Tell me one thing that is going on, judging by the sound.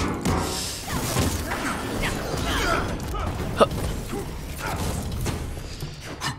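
Video game fighting sounds whoosh and thud.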